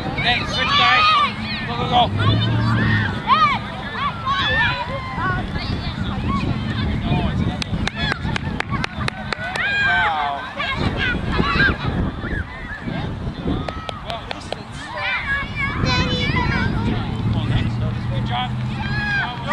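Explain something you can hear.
Young children shout and call out excitedly outdoors.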